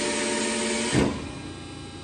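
A press brake's ram stops with a sharp clunk.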